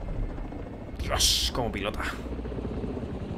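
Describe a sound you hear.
A helicopter whooshes past loudly.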